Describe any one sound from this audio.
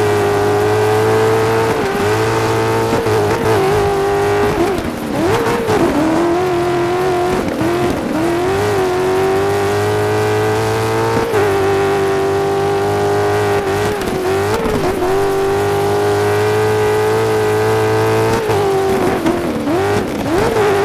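A racing engine roars loudly, revving up and dropping between gear shifts.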